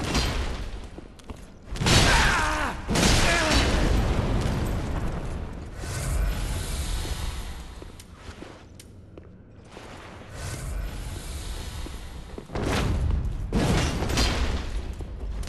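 Lava rumbles and roars in a low, steady drone.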